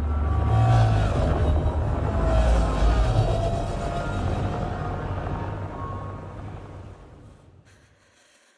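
Spacecraft engines roar as they fly past, then fade away.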